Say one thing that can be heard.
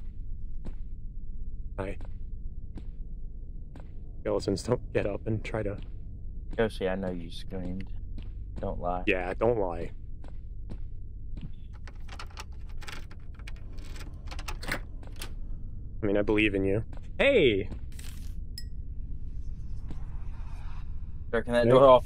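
Footsteps tread on a stone floor.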